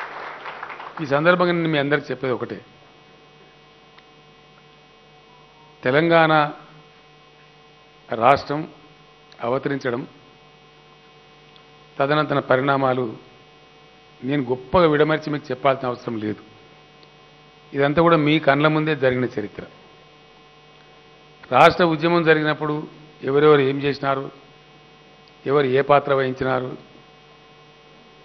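An elderly man speaks slowly into a microphone, with pauses between phrases, heard through a loudspeaker.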